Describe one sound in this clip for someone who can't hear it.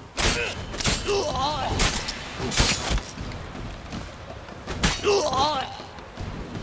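A man grunts and cries out while fighting.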